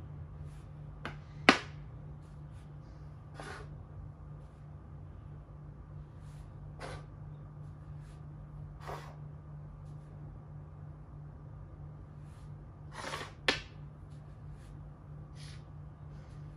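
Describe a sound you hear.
Plastic game pieces tap and click on a wooden board.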